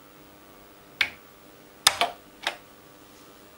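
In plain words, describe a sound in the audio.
A finger presses keys on a computer keyboard with sharp clicks.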